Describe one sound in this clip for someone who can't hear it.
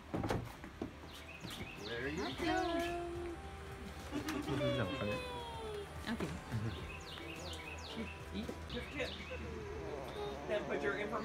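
Children talk excitedly close by.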